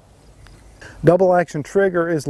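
A man speaks calmly into a clip-on microphone, close by.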